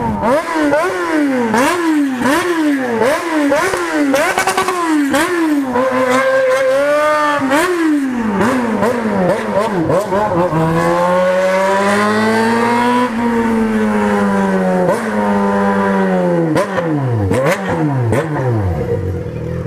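A motorcycle engine revs up and down through the gears, close by.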